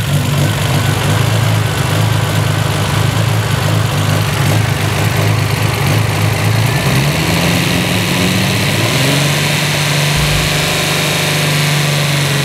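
A large engine idles with a steady, deep rumble.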